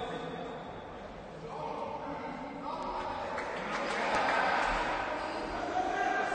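Footsteps and sneakers squeak on a wooden court in a large echoing hall.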